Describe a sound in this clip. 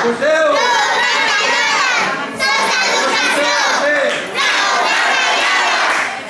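Children chant loudly close by.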